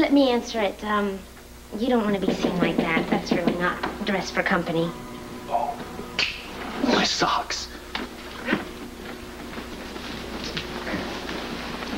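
A woman speaks warmly and with amusement nearby.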